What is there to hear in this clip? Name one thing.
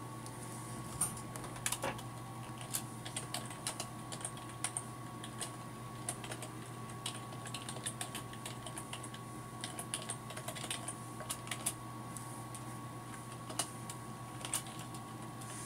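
Keys on a keyboard click in quick, uneven bursts of typing.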